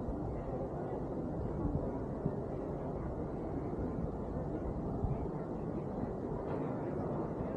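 Wind blows roughly across a microphone outdoors.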